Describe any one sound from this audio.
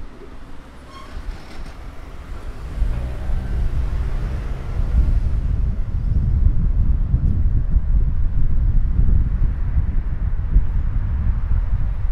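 Wind buffets and rumbles outdoors, growing stronger.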